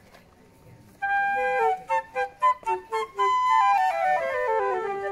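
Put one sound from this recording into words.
A flute plays a quick, lively melody outdoors.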